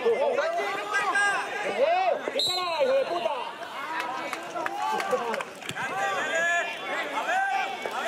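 Men shout and call to each other across an outdoor football pitch.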